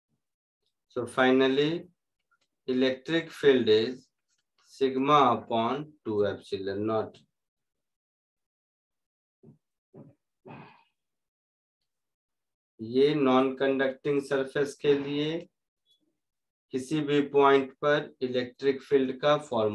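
A man lectures calmly at close range, with pauses.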